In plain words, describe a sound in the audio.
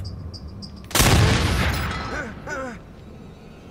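A shotgun fires with a loud blast that echoes.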